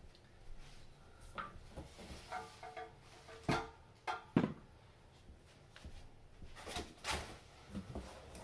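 Plastic wrap crinkles and rustles.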